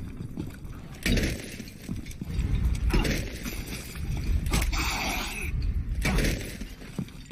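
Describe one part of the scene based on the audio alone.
A heavy mace strikes with loud, crunching thuds.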